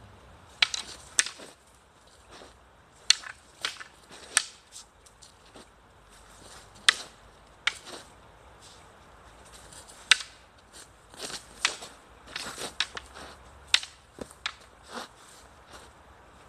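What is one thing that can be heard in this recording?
Feet scuff on a dirt path.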